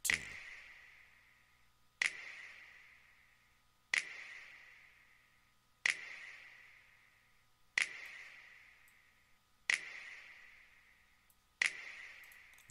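A sharp electronic drum hit rings out with a long reverberant tail, repeating about every two seconds.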